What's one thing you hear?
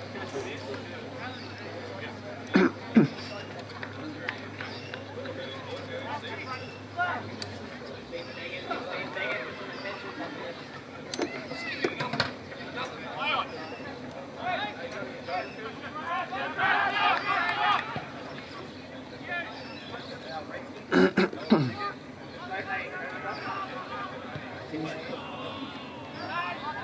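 Men shout and call out across an open field.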